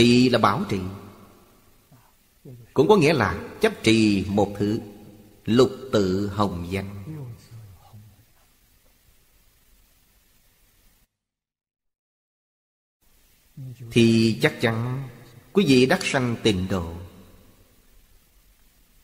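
An elderly man speaks calmly and closely into a microphone, pausing between phrases.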